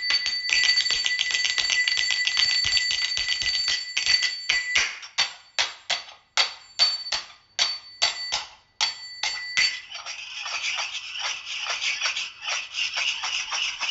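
Small finger cymbals clink rapidly and ring brightly.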